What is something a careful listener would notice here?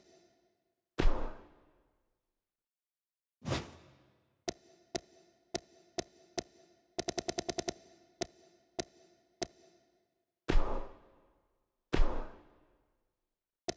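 Menu transitions swoosh with a low thump.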